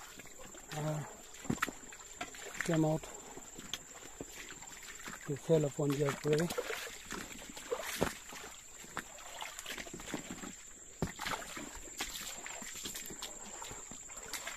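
A shallow stream trickles softly over stones.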